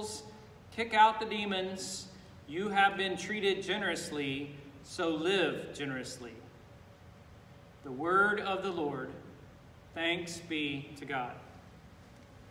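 A middle-aged man speaks calmly close by in an echoing room.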